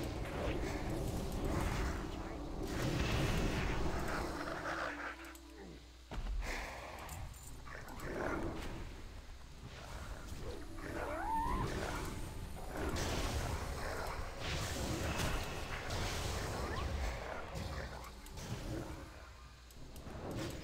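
Spells crackle and clash in a fantasy battle.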